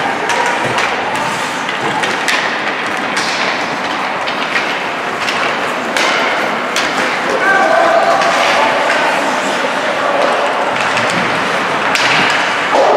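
Skates scrape and hiss on ice in a large echoing hall.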